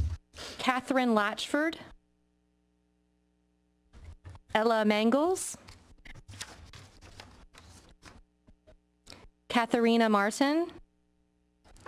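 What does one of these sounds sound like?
A woman reads out over a microphone.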